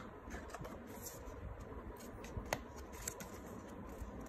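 Cardboard taps and scrapes softly against a table.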